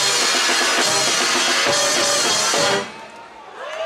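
A large brass band plays loudly outdoors.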